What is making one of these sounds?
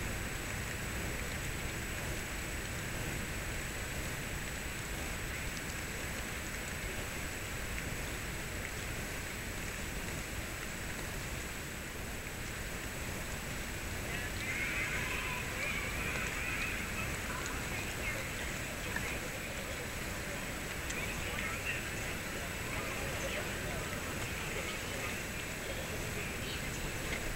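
A crowd murmurs and chatters outdoors nearby.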